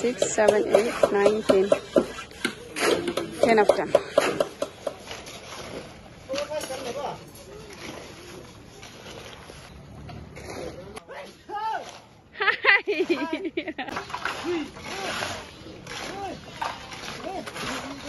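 Shovels scrape through wet concrete.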